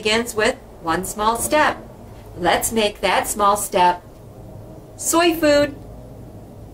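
A woman talks calmly and cheerfully to the listener, close to the microphone.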